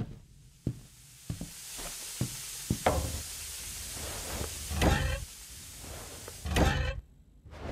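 Steam hisses loudly from a pipe.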